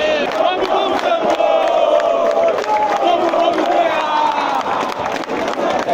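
Fans clap their hands in rhythm nearby.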